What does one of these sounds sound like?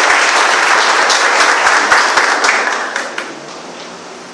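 A crowd applauds, then fades out.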